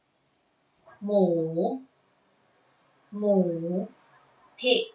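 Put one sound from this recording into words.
A young woman pronounces a single word slowly and clearly, close to the microphone.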